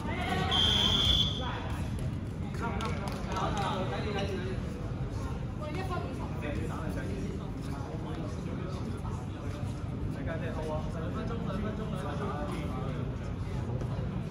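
Many young people chatter and call out in a large echoing hall.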